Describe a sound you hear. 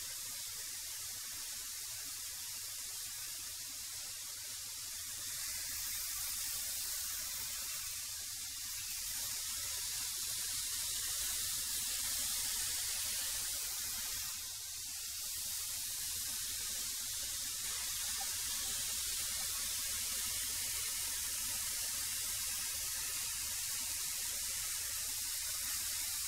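A wood planer roars steadily.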